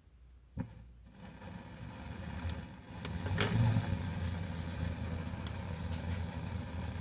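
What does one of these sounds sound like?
A gas torch hisses and roars steadily.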